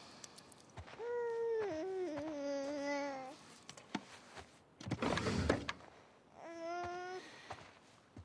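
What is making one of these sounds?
A young woman hums a short tune softly.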